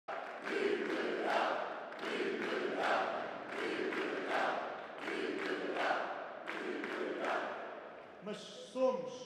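A crowd cheers and chants rhythmically.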